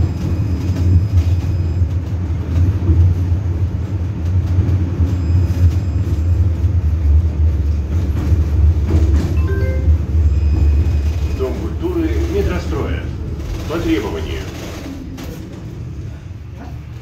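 A tram rumbles steadily along its rails, then slows and quiets down.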